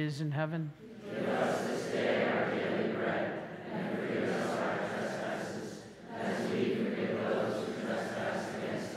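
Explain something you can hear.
A congregation recites a prayer aloud together in a large echoing hall.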